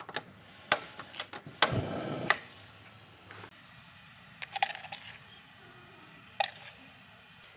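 Metal pots clink and knock.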